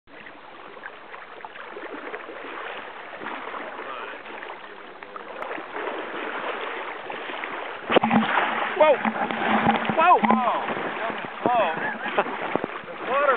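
River water flows and ripples steadily.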